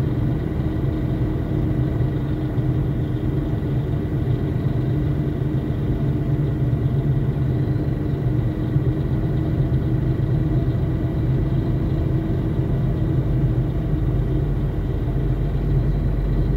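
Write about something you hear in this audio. Floodwater rushes and splashes against the vehicle.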